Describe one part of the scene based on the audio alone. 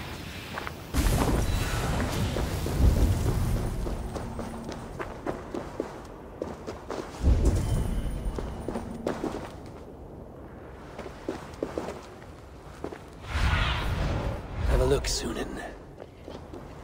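A deep magical whoosh swells and fades.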